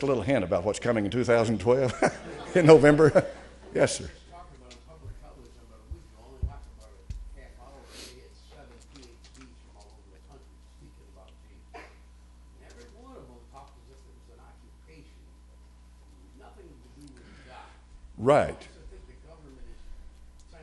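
An elderly man speaks with animation through a microphone in a large echoing room.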